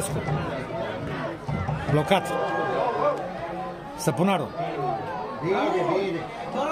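Men in a crowd of spectators talk and call out loudly close by.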